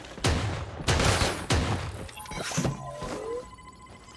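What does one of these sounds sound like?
Gunfire bursts out in quick loud shots.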